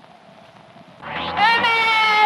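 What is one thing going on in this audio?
A young woman calls out in a high, long voice.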